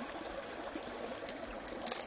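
Pearls click softly against each other in a hand.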